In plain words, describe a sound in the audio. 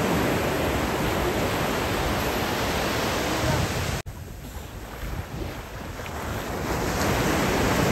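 Water splashes as a person wades and kicks through the shallows.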